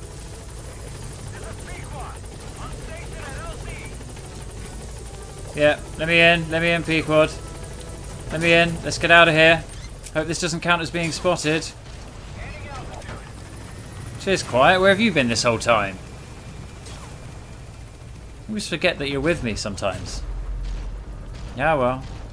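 A helicopter's rotor thrums steadily overhead.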